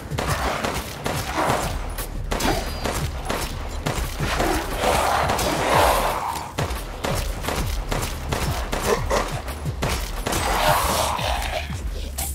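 Pistol shots ring out in quick bursts.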